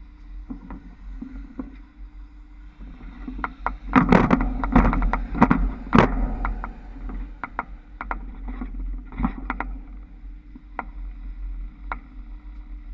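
Trolley poles clatter and knock sharply as they pass through overhead wire junctions.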